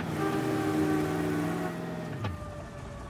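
A car engine hums as a car drives along a street.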